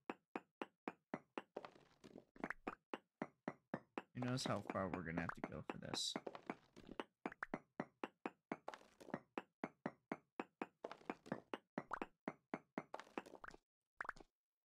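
A pickaxe strikes stone in quick, steady blows.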